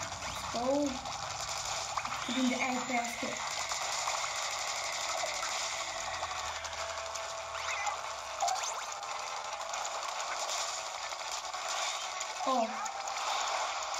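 Video game sound effects of splashing and shooting play through a small speaker.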